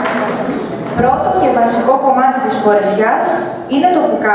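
A young woman speaks out loud on a stage.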